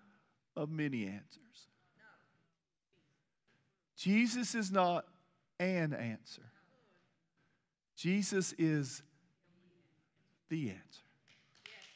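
A middle-aged man speaks with emphasis through a microphone, pausing between phrases.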